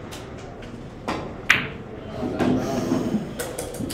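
A cue strikes a billiard ball nearby with a sharp click.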